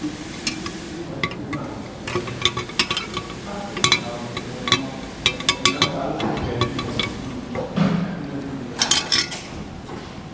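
A metal rod stirs and clinks against the inside of a glass jar.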